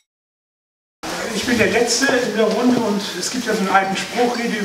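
A man speaks to an audience through a microphone in a large room.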